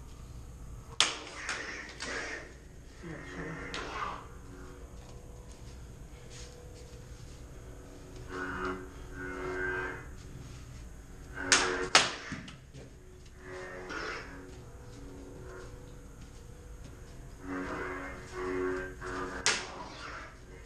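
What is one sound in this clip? Toy light swords clack sharply against each other.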